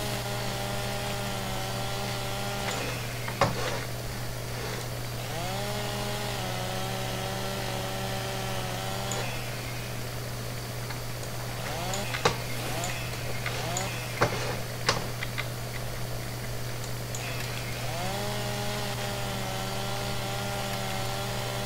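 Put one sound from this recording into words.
A chainsaw engine idles and revs up in bursts to cut.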